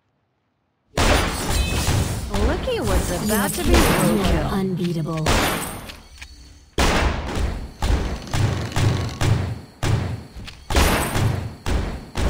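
Magic blasts and sword hits crash and whoosh in a fast fight.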